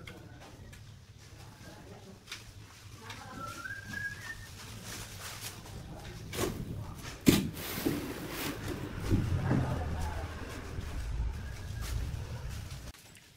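A shovel scrapes and digs into soil.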